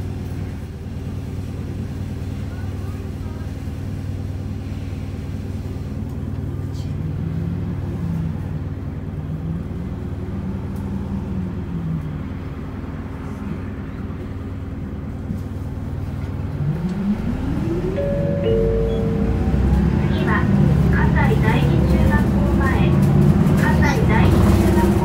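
A vehicle engine hums steadily, heard from inside the vehicle.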